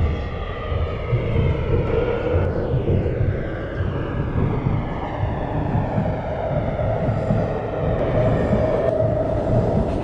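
An electric train motor whines, its pitch sliding up and down.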